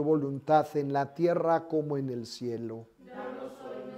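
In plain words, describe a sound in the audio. An elderly man prays aloud in a chanting voice nearby.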